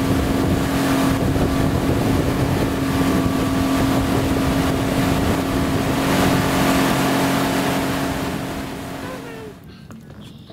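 Water rushes and splashes behind a moving boat.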